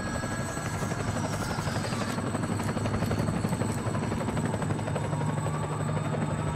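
A helicopter's rotors thump steadily nearby.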